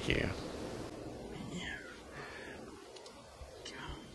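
A teenage boy speaks slowly nearby.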